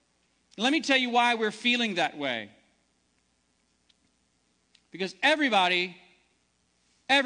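A man preaches through a microphone in a large room, speaking with emphasis in short phrases.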